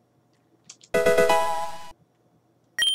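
A short bright video game jingle plays.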